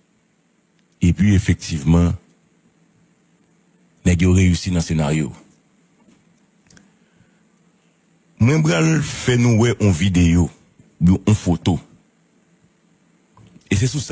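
A man speaks calmly into a close microphone in short bursts with pauses.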